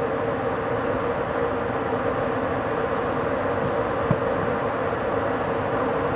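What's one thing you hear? A train rumbles steadily along the rails, its wheels clattering on the track.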